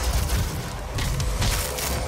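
A monster snarls close by.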